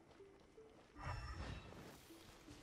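A magical blast whooshes and booms loudly.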